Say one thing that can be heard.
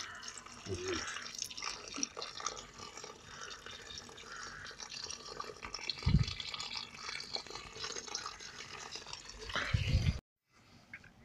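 Water trickles from a pipe and splashes onto a hand and the ground.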